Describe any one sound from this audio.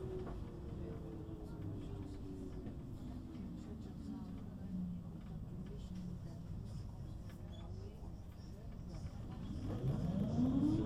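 An electric tram's motor whines, sinking in pitch and then rising again, in an echoing space.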